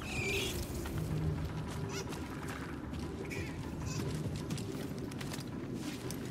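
Footsteps crunch on loose gravel.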